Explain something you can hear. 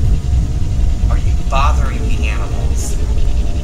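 A young man speaks briefly and quietly into a two-way radio close by.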